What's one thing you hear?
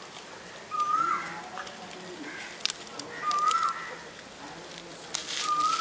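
A dog gnaws and crunches on a stick close by.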